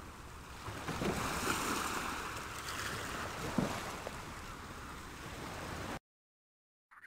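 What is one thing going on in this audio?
Choppy water splashes and rushes against a rowing boat.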